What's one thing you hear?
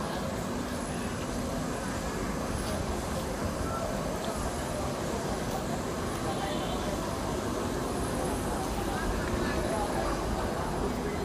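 Footsteps scuff on concrete outdoors.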